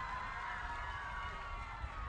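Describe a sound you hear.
Young boys cheer and shout in celebration.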